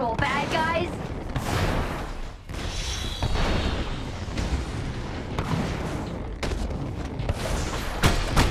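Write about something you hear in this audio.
Jet thrusters roar steadily.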